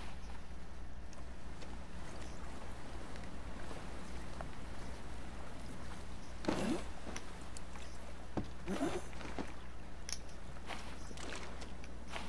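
Water gurgles and swirls around a swimmer underwater.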